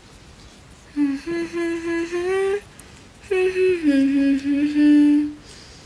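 A young woman sings softly close by.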